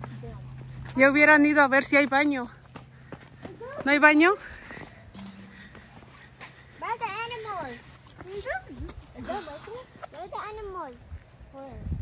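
Young girls call out loudly and chatter close by.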